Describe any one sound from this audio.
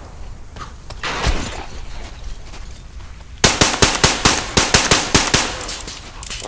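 A rifle fires rapid, loud shots in quick bursts.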